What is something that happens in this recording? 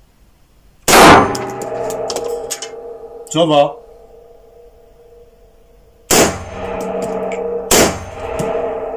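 A rifle fires loud single shots that ring out in an enclosed room.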